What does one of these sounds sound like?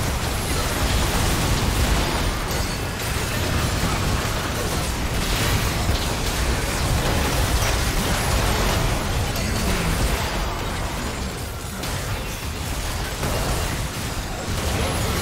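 Spell effects blast, crackle and whoosh in a fast battle.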